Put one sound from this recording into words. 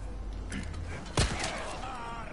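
A gunshot cracks sharply.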